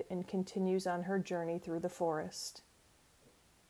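A woman speaks calmly and closely into a headset microphone.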